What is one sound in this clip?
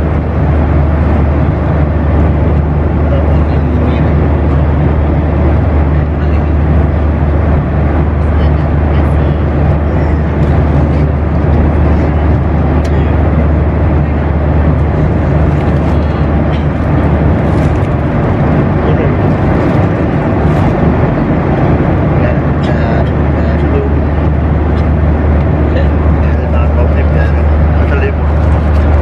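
A plane's cabin engines drone steadily.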